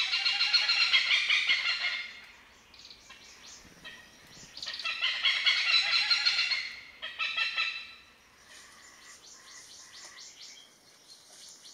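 A large bird pecks and rustles among dry leaves on the ground.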